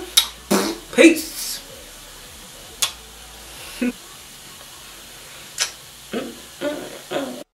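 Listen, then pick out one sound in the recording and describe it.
A young woman speaks playfully and close up, in short bursts.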